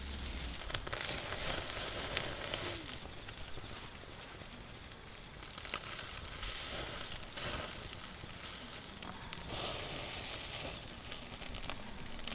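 Metal tongs click against a grill.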